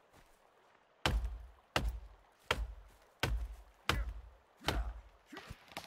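An axe chops into a tree trunk with sharp, regular thuds.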